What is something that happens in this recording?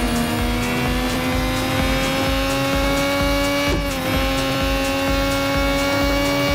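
A racing car engine drones loudly at a high, steady pitch.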